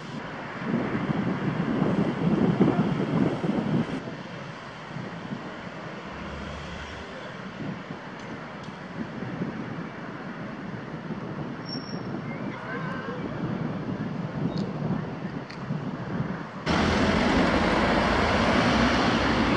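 Tractor engines rumble steadily nearby.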